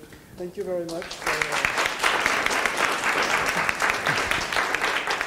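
An audience claps in applause.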